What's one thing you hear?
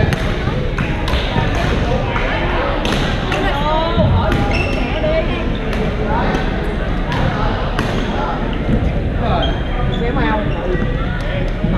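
Many young men and women talk and call out across the hall.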